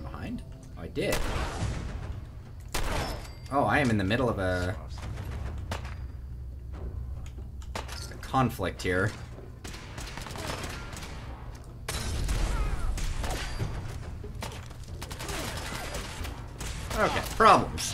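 Rifle shots ring out sharply.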